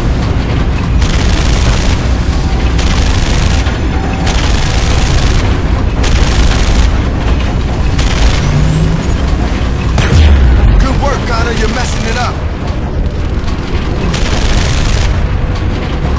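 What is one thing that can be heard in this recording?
A heavy machine gun fires in long rattling bursts.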